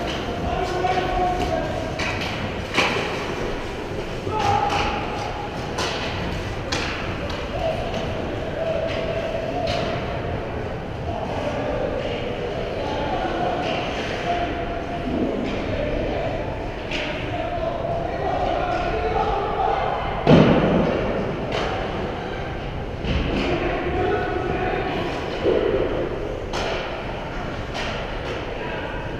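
Ice skates scrape and glide across the ice in a large echoing rink.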